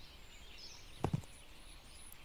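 A soft interface click sounds once as a building plot is placed.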